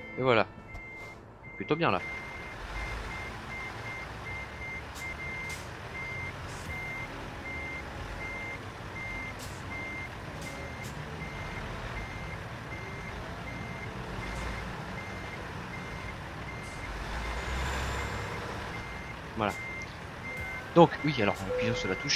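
A truck's reversing alarm beeps at an even pace.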